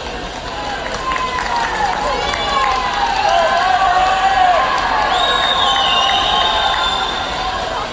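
Whistles and shrill yells rise from a crowd.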